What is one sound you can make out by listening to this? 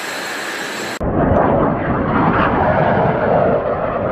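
A jet roars loudly as it flies past.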